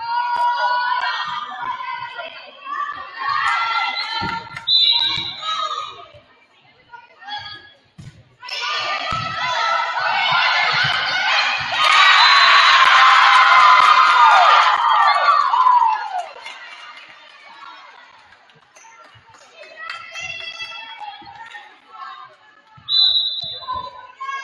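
Young women shout and call out to each other in a large echoing gym.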